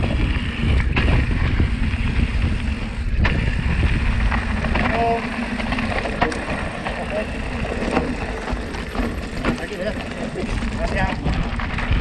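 Stones rattle and clatter under a bike's wheels.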